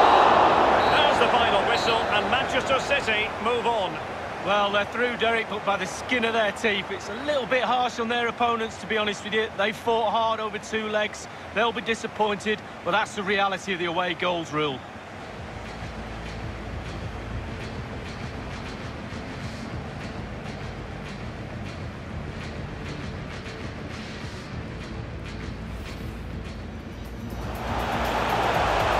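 A large crowd roars and murmurs in a stadium.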